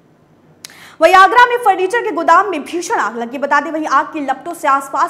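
A woman speaks forcefully and with animation into a microphone.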